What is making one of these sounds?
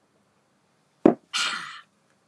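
A mug is set down with a knock.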